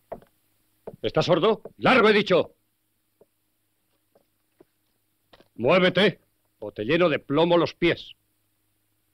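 Another man answers sternly.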